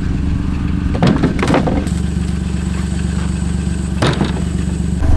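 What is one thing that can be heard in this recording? A log thuds onto dry ground.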